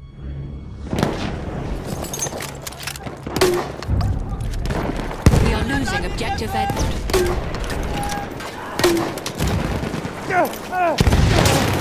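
Gunfire crackles in the distance.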